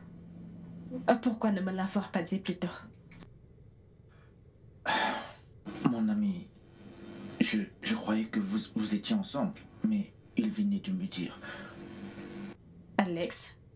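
A young man speaks calmly and quietly up close.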